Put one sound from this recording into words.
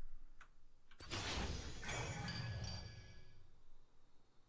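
Game sound effects burst and clash.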